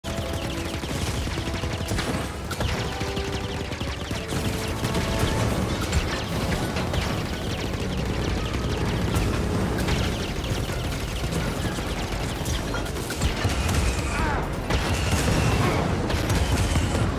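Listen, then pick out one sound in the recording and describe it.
Blaster bolts fire in rapid bursts.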